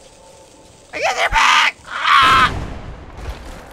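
A fire bursts into flames with a loud roar.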